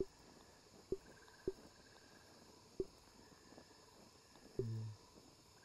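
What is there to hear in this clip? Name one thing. Soft menu clicks sound as a selection moves.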